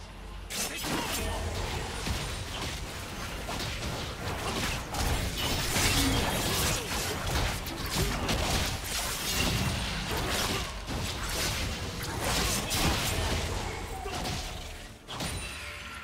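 Magic blasts and hits crackle and burst during a fast fight.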